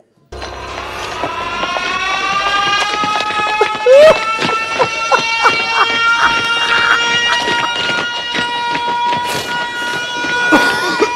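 A young man laughs uncontrollably.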